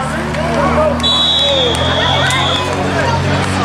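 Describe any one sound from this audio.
A referee blows a whistle.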